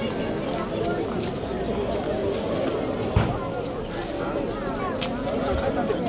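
A crowd of men and women murmurs and chatters nearby outdoors.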